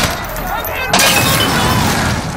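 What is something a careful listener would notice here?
A loud explosion bursts and roars.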